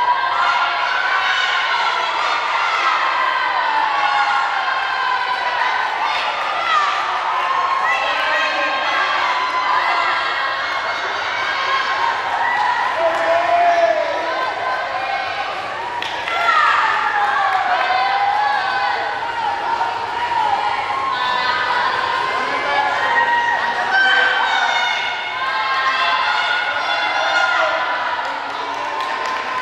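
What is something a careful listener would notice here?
A crowd of young girls cheers and shouts loudly in a large echoing hall.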